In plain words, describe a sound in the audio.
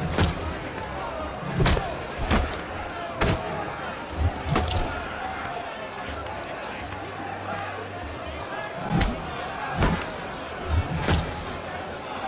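Fists land heavy punches in a brawl.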